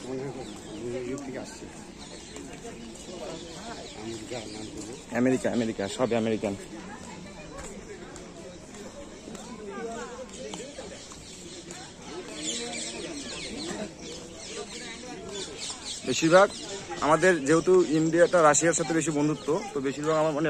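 Men and women chat nearby outdoors.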